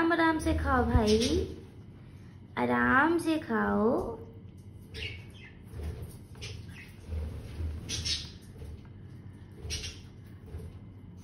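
A parrot's beak pecks and clinks against a metal dish.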